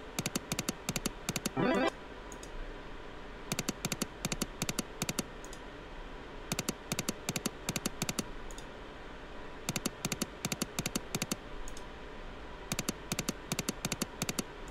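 A slot machine's reels spin and click to a stop in quick bursts of ticks.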